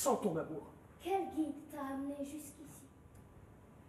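A young woman speaks softly.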